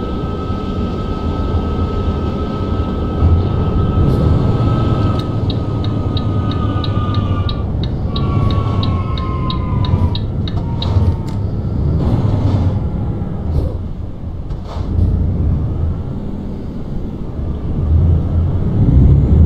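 A truck engine hums low and steady.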